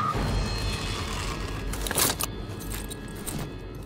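Flames crackle on a burning car.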